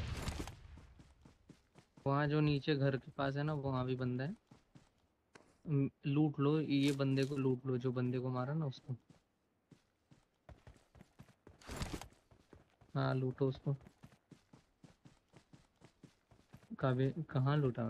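Footsteps thud quickly over dry ground.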